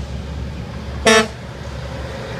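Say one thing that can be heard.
A truck's air horn blasts once, loud and close.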